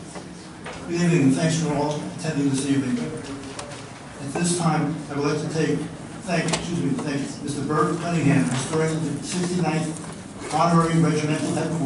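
A man speaks steadily through a loudspeaker.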